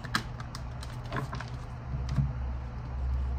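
Cards shuffle and flick in hands.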